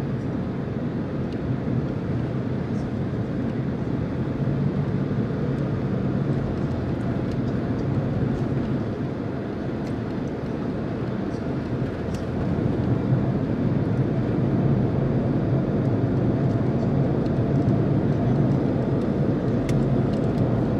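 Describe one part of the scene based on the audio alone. Tyres roll on the road with a low, steady rumble.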